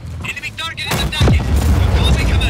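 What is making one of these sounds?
A large explosion booms loudly.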